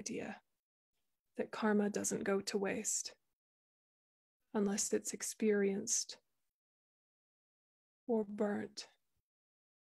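A young woman speaks calmly in short phrases over an online call.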